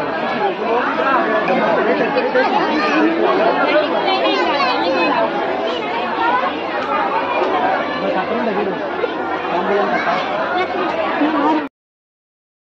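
A large crowd of men and women chatter loudly nearby.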